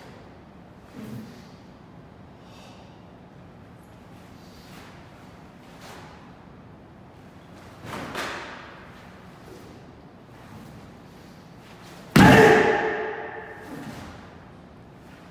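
A stiff cotton uniform snaps with quick arm strikes.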